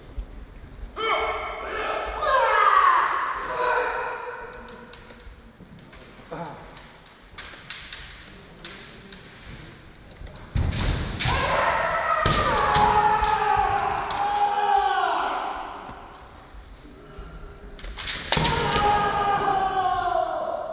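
Kendo fighters shout long, loud cries that echo through a large hall.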